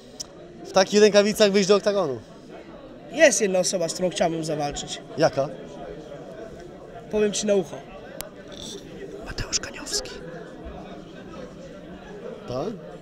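A young man answers in a high, animated voice, close by.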